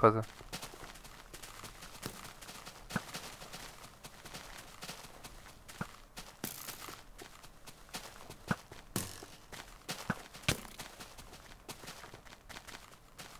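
Footsteps rustle softly through grass.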